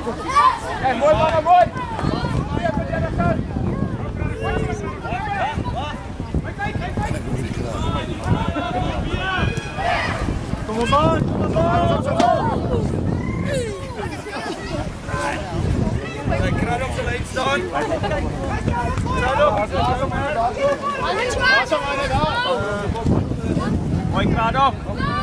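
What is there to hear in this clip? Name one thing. A crowd of children and adults chatters and shouts outdoors.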